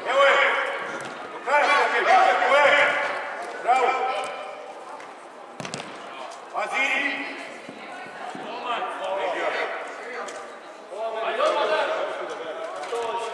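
Young players shout and call out to each other in a large echoing hall.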